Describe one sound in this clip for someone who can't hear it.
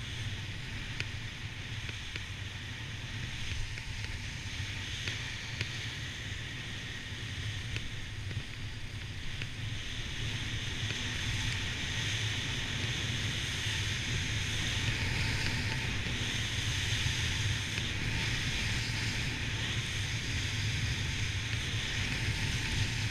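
Wind rumbles against a close microphone.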